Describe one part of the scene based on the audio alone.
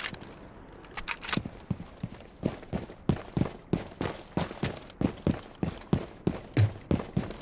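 Footsteps run quickly and steadily.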